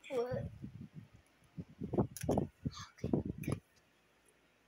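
A young girl talks playfully, close to the microphone.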